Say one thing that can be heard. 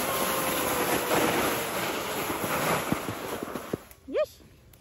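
A sled slides and scrapes over snow.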